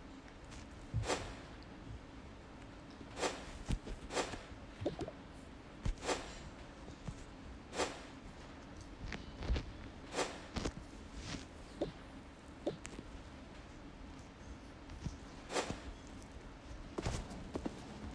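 Short soft pops sound again and again.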